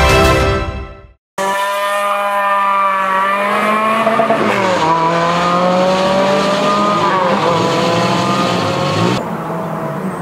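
A rally car engine roars loudly, revving high and shifting gears as it speeds away.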